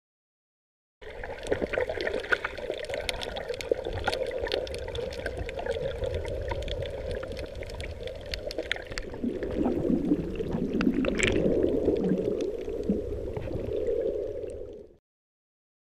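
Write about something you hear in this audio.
Water swishes and rumbles close by underwater.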